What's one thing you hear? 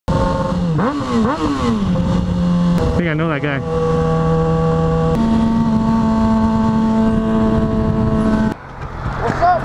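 A motorcycle engine hums and rises and falls in pitch as it shifts gears.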